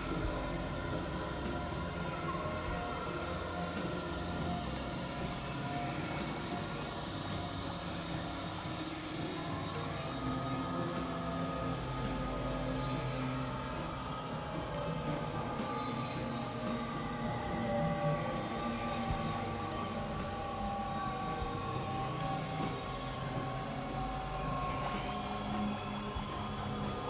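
A synthesizer plays steady droning electronic tones with slow sweeping glides.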